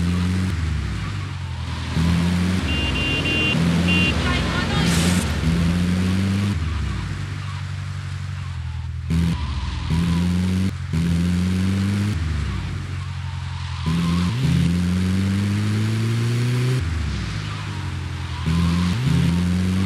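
A vehicle engine hums and revs up and down as it drives.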